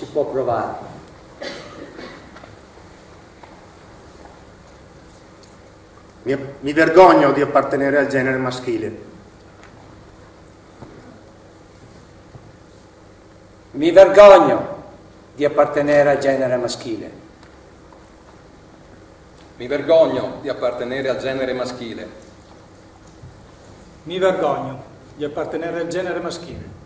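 Men recite calmly in turn, their voices echoing in a large hall.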